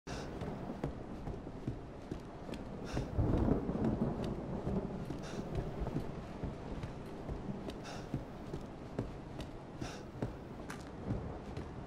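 Footsteps thud and creak slowly on wooden floorboards.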